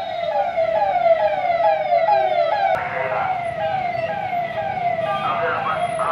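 A police siren wails in quick repeating falling sweeps.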